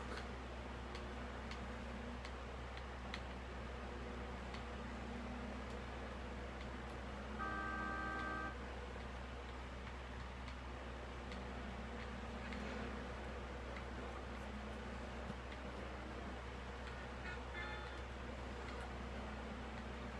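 An electric fan hums steadily nearby.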